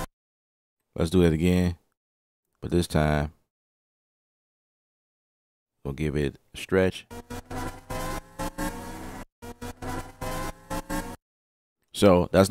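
A man talks calmly into a close microphone, in short bursts.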